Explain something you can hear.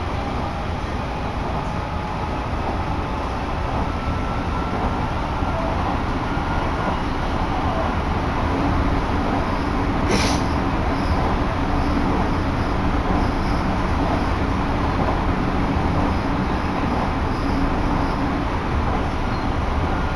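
A train rumbles along its rails.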